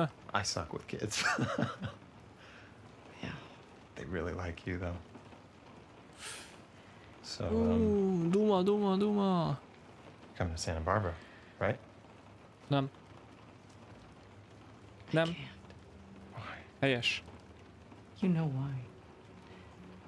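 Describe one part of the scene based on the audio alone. A man speaks calmly and warmly.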